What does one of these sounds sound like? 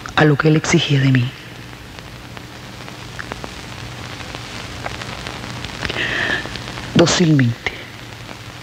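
A woman speaks quietly and tensely, close by.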